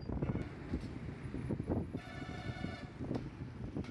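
Auto rickshaw engines putter close by.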